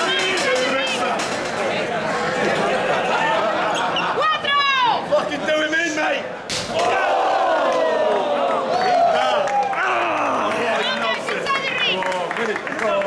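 A crowd of men and women cheers and shouts loudly nearby.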